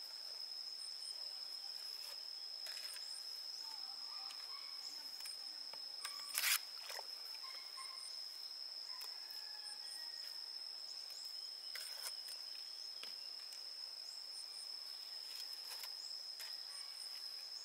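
A trowel spreads and slaps cement onto a rough surface.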